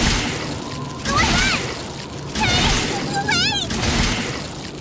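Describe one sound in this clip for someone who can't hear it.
A large creature groans and roars in pain.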